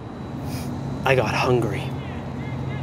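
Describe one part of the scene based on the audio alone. A young man speaks briefly, muffled by a helmet.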